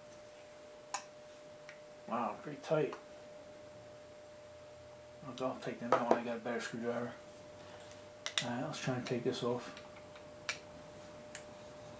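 Small metal parts click and tap against each other.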